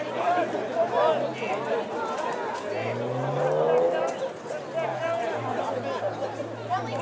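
A distant crowd murmurs and cheers outdoors.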